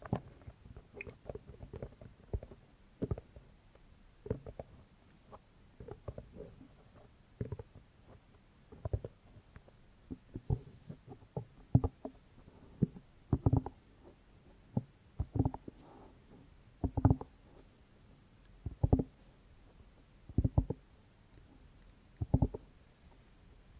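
A young woman whispers softly and close into a microphone.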